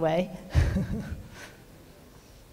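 A woman speaks and laughs through a microphone.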